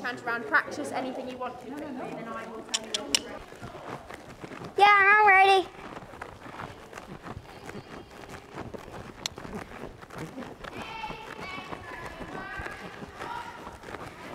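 A horse's hooves thud on sand as it trots.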